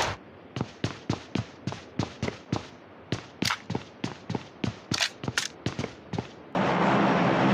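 Quick footsteps thud on a wooden floor.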